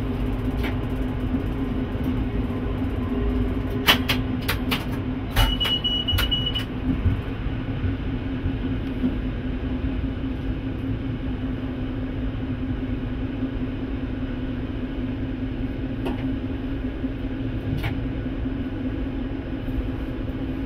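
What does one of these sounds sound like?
Train wheels rumble and clatter over the rails.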